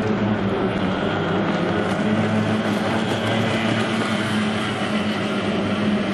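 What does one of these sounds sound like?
Water splashes and hisses against a speeding boat's hull.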